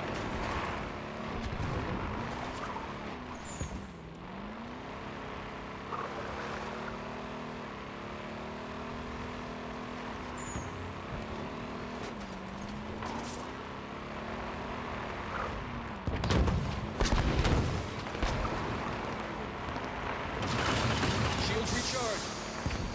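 A vehicle engine hums and revs as it drives over rough ground.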